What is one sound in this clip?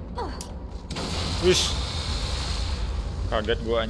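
An explosion bursts with a loud crackling roar.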